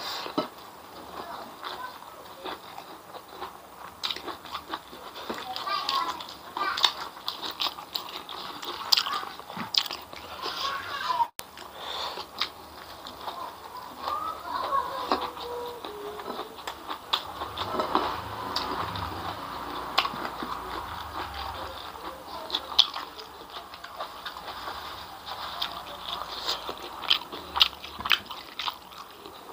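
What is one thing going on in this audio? A man chews food loudly and smacks his lips close to a microphone.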